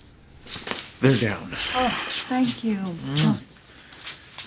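A woman speaks urgently nearby.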